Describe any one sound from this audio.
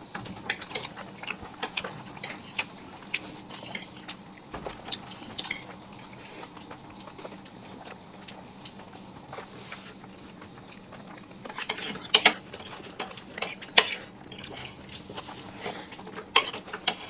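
Forks scrape and clink against plates.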